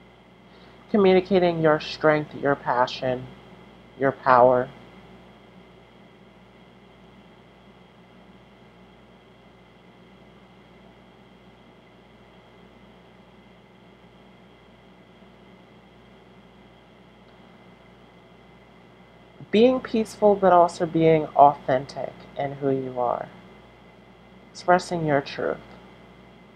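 A woman speaks calmly, close by, in short bursts with long pauses.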